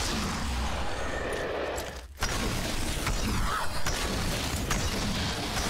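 Swords clash and magic crackles in a fight.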